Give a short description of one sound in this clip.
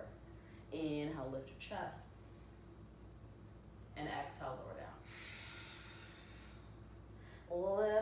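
A woman speaks calmly and slowly nearby.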